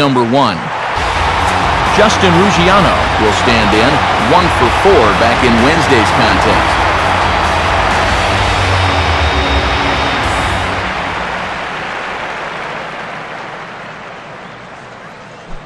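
A large crowd cheers loudly, then fades to a low murmur.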